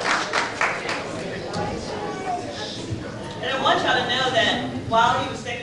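A congregation sings together in an echoing hall.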